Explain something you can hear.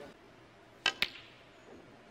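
Snooker balls knock together with a sharp clack.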